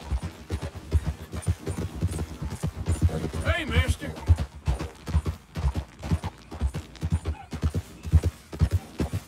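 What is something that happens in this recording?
Horse hooves thud in a steady rhythm on a dirt track.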